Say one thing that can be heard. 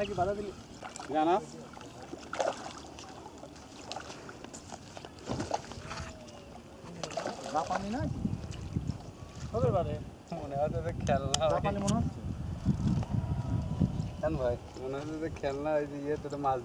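A fishing reel clicks as a man winds it.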